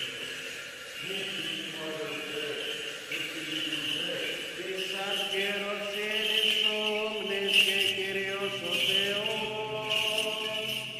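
Men chant together in a large echoing hall.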